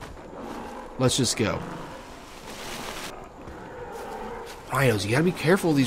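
Footsteps crunch on dry leaves and dirt.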